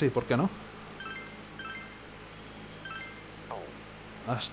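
Short electronic menu chimes beep in quick succession.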